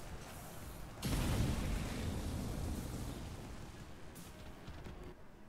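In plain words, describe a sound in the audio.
A loud blast booms and then rumbles away.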